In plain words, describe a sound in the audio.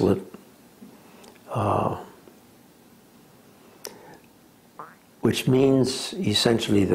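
An elderly man speaks calmly and haltingly, close by, with pauses.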